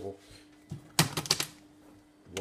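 A plastic water bottle tips over and clatters onto a hard floor.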